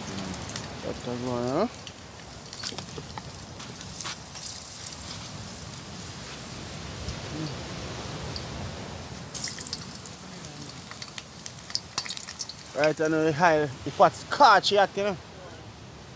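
Hot oil sizzles in a pan.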